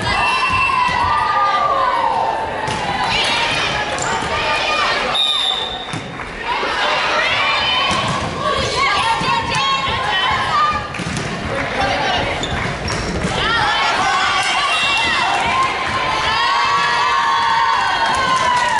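Young women shout and call out to each other.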